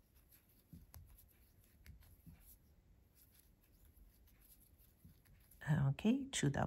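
A metal crochet hook clicks and scrapes softly against thread.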